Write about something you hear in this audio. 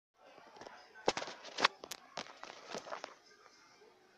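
Close rustling and knocking from a phone being handled.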